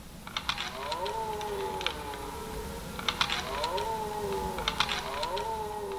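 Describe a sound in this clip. Two deer clash their antlers together.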